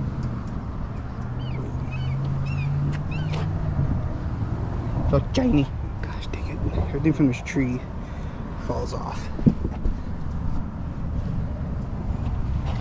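A microfiber towel rubs over a truck's painted body.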